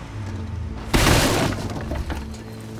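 A car door opens with a loud clunk.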